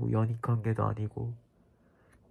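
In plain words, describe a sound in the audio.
A young man makes nasal voice sounds up close.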